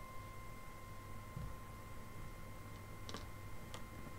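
Cards tap softly onto a table.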